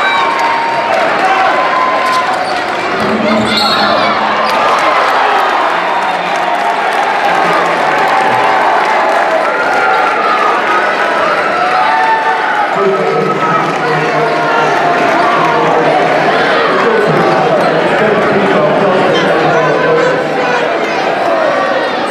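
A large crowd talks and cheers in an echoing gym.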